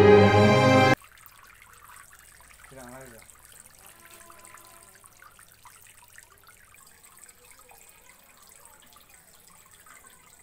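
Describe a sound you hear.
Water trickles and splashes softly into a shallow basin.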